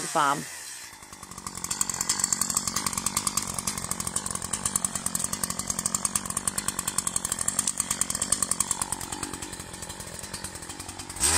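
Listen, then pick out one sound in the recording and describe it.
A chainsaw engine idles nearby with a rapid, steady putter.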